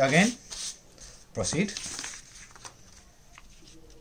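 Paper rustles as a sheet is slid across a table.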